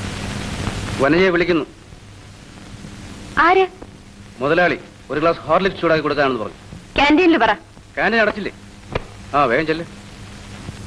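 A man speaks in short phrases.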